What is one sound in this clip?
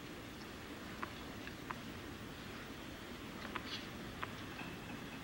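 A tennis ball bounces a few times on a clay court.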